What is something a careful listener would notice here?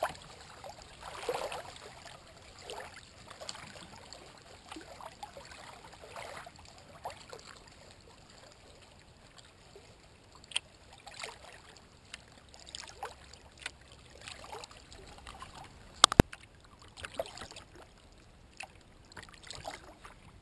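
Water laps and splashes softly against a kayak as it glides along.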